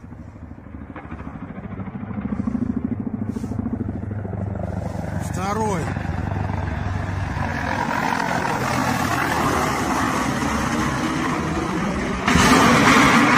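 A helicopter's rotor thumps as it flies low overhead.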